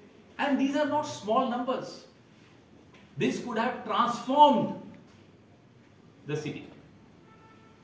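A middle-aged man speaks calmly into microphones, in short phrases with pauses.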